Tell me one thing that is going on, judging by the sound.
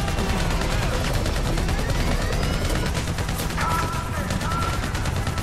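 Helicopter rotor blades thump steadily overhead.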